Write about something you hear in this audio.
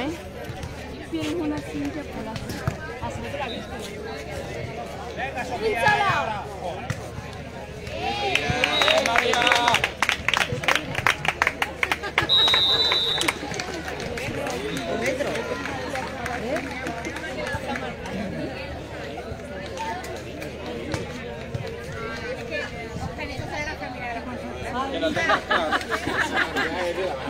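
Young women call out and shout to each other outdoors.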